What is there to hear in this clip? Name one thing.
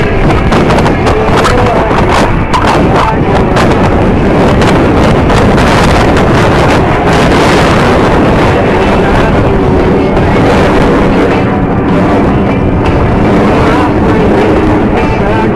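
Jet engines roar loudly overhead in a steady, rumbling rush.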